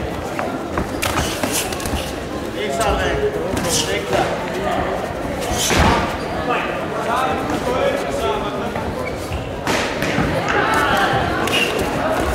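Gloved punches thud against bodies and headguards.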